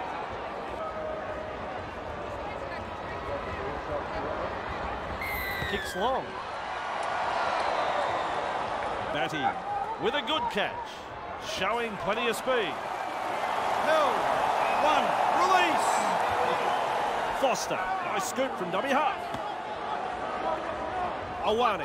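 A large crowd roars and cheers in a stadium, swelling and fading.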